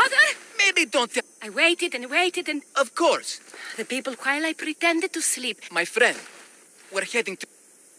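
A young woman speaks calmly, close by.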